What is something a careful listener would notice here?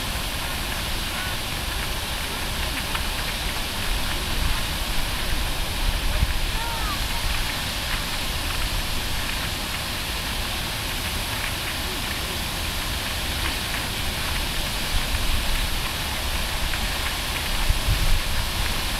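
Fountain spray hisses and splashes onto a lake.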